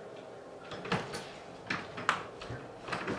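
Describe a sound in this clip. A door latch clicks and rattles.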